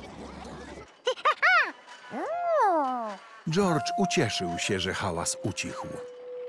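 A small monkey squeals and chatters with animation.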